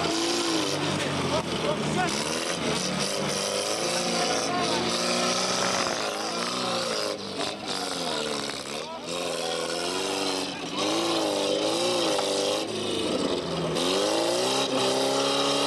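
Tyres scrape and crunch over dry dirt.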